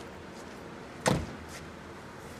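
A car door slams shut nearby.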